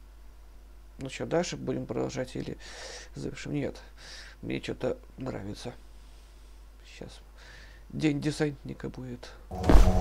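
A young man talks calmly into a nearby microphone.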